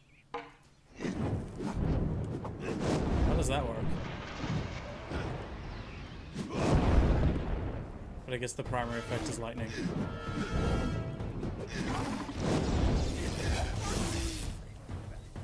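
Fiery blasts roar and crackle during a fight.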